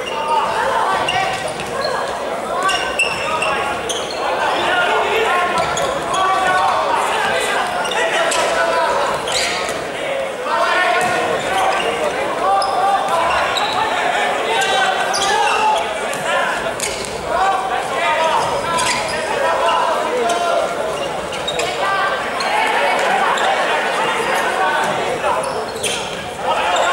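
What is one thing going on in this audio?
A ball is kicked with sharp thuds on an indoor court.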